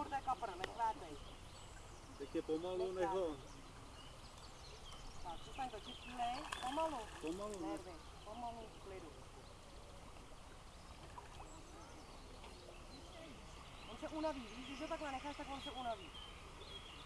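Young people talk casually close by outdoors.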